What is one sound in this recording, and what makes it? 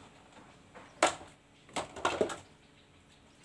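Glass bottles clink and knock.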